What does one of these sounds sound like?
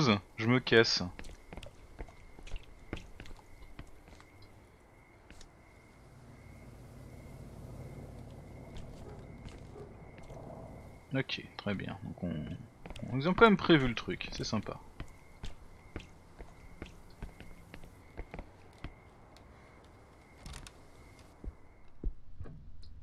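Footsteps tap slowly on a hard path.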